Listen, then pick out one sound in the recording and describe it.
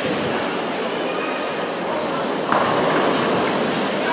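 A bowling ball rolls down a lane.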